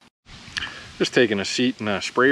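A man talks with animation close to a microphone, outdoors.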